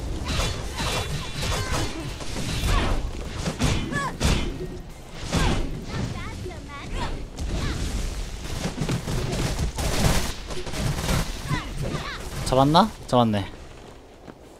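Video game weapons slash and clash with sharp impacts.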